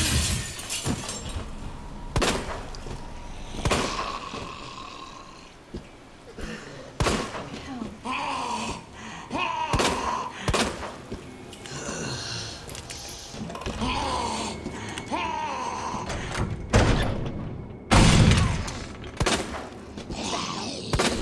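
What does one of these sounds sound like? A zombie groans and moans.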